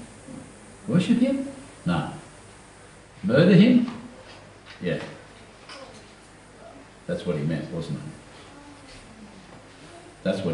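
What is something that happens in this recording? An older man speaks slowly and calmly into a microphone, with pauses, in a room with slight echo.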